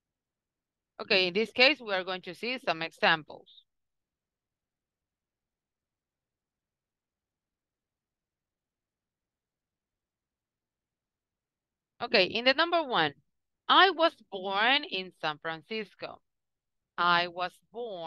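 A woman speaks calmly over an online call, explaining slowly.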